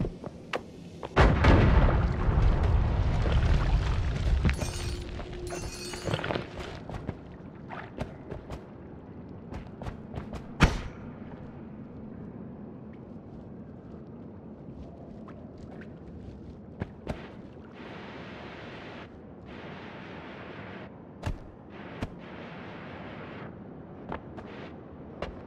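Short video game sound effects crunch and click repeatedly.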